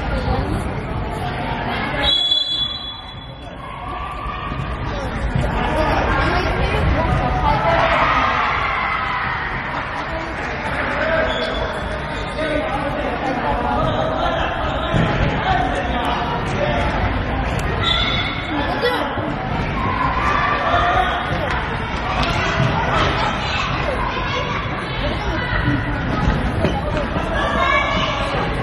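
Children's shoes squeak on a wooden gym floor.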